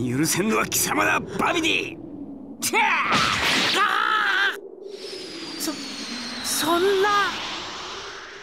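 An elderly man cries out in panic with a shrill, strained voice.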